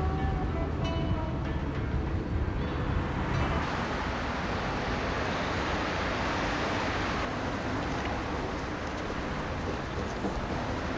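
A car engine hums as cars drive along a street.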